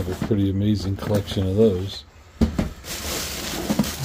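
Cardboard boxes scrape and thump as they are moved.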